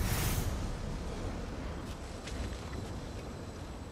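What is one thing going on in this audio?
A magical beam whooshes and shimmers.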